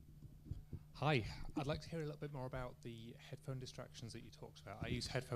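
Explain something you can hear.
A man in the audience asks a question from a distance.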